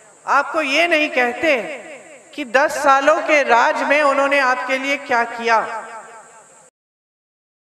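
A woman speaks forcefully into a microphone over a loudspeaker.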